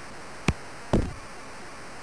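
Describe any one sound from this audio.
A punt thuds off a foot in a video game.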